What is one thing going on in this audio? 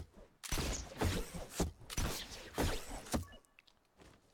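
Footsteps run across grass.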